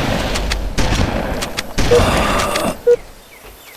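A shotgun fires in loud blasts.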